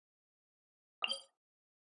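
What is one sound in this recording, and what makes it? A short electronic chime sounds.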